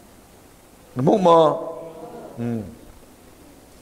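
A middle-aged man speaks briefly into a microphone.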